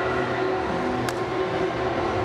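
Two people slap hands in a high five.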